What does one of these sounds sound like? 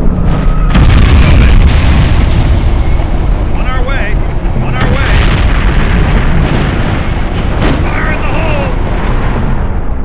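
Gunfire crackles in a battle.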